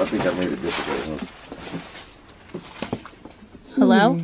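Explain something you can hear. Footsteps crunch and rustle over scattered debris.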